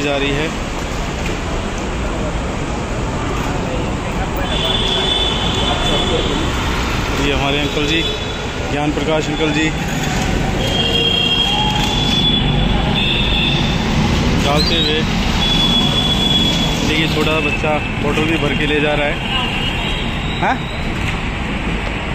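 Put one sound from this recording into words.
Men talk loudly in a crowd nearby.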